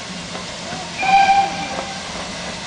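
A steam whistle blows briefly.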